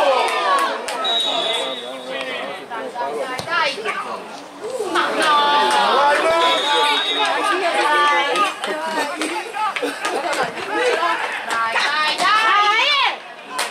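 Young men shout to each other across an open pitch.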